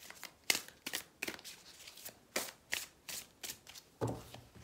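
Cards shuffle with quick crisp flicks.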